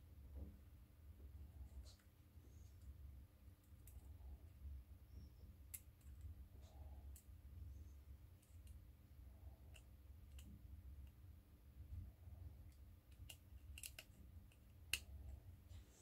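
A metal tool scrapes and clicks against a small phone's frame.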